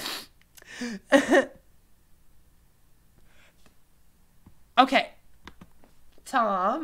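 A young woman speaks with animation, close to a microphone, in short bursts.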